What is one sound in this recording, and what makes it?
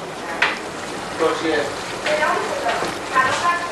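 A wooden spoon scrapes and stirs in a pan.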